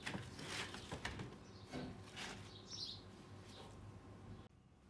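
Small plastic and metal parts scrape and clatter on a hard surface.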